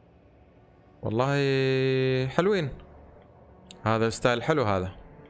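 A young man sings long, drawn-out notes loudly and close to a microphone.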